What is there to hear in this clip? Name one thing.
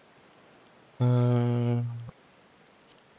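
A man hums a short, steady low note.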